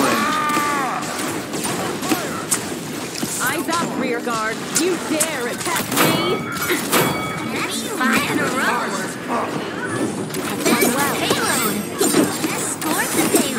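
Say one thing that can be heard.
An energy gun fires in quick bursts.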